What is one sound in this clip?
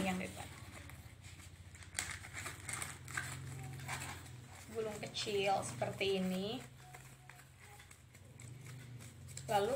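Cardboard rustles and scrapes as it is rolled up.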